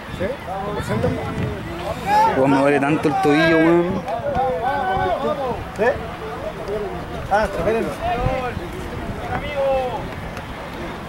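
Men shout and call out across an open field outdoors.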